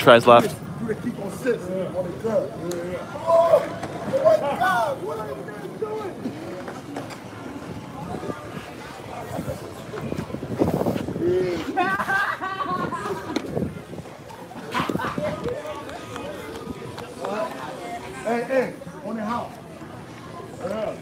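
Men talk with animation close to a microphone outdoors.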